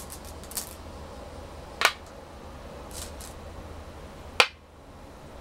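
Stones clack sharply onto a wooden board.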